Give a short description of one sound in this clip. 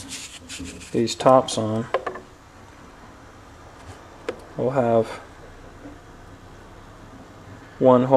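A thin metal plate scrapes and taps against a metal box.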